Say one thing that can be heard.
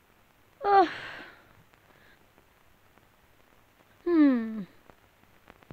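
A young woman cries out in a high, wailing voice.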